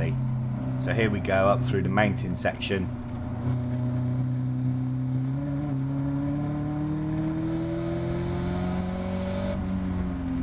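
A race car engine drones steadily and rises in pitch as it accelerates.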